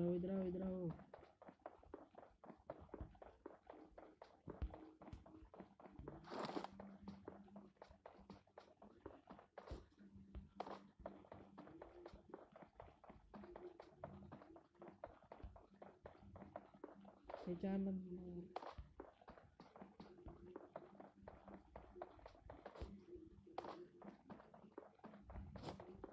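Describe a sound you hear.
Footsteps thud quickly over ground as someone runs.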